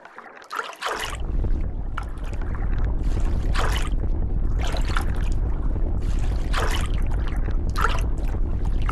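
A shark bites into prey again and again with crunching thuds.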